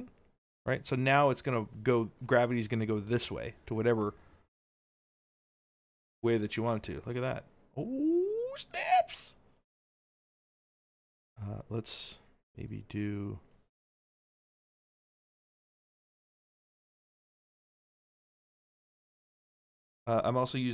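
A man talks casually into a close microphone, with pauses.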